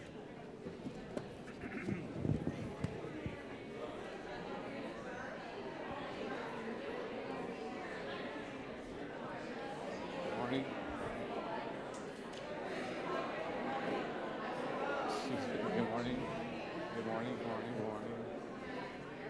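Several adults and children chatter nearby in a large echoing hall.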